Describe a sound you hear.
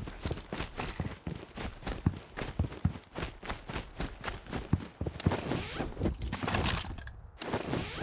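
Footsteps thud quickly on ground and concrete.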